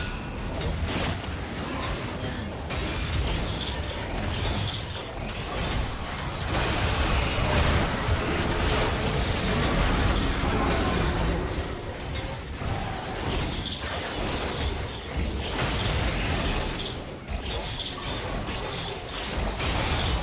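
Magic blasts, zaps and hits clash loudly in a fast fight.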